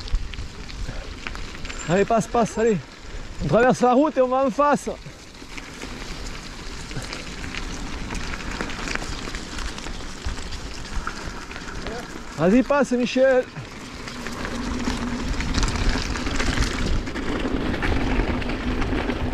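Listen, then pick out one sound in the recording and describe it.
Bicycle tyres roll and crunch over a rough dirt track.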